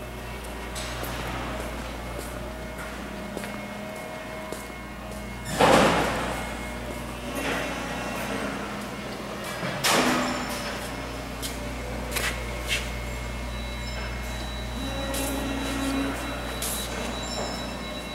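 Large machinery hums steadily in a big, echoing hall.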